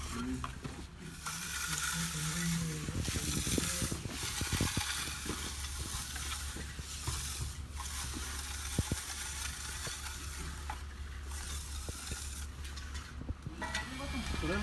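A hand tool scrapes and rasps across wet concrete.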